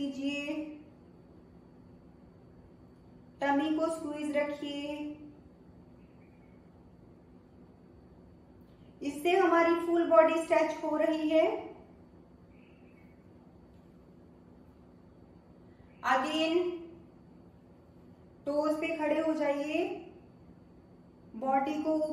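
A woman speaks calmly in short phrases, close to a microphone.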